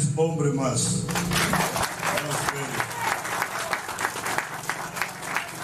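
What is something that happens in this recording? A crowd claps and applauds outdoors.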